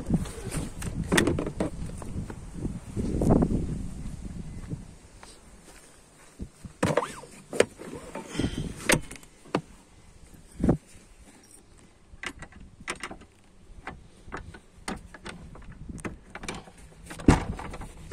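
A hand folds a fabric car seat, with rustling and soft knocks.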